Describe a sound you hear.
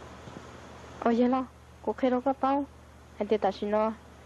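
A young woman speaks urgently, close by.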